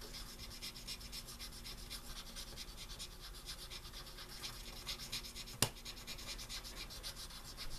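A fingertip scratches and scrapes rapidly across small metal contacts.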